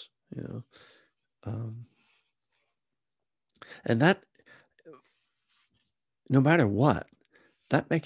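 A middle-aged man speaks close to a microphone in short, expressive phrases with pauses.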